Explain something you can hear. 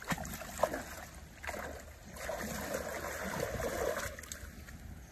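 Water splashes loudly close by.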